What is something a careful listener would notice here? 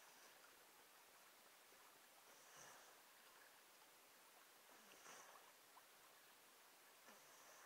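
Waves break and wash over rocks nearby.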